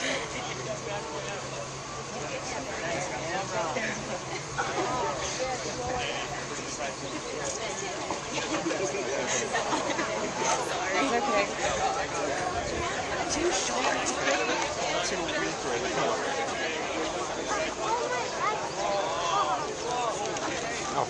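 A crowd of men and women talks and calls out excitedly close by, outdoors.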